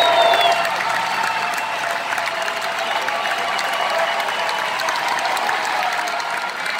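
A crowd cheers and shouts in a large room.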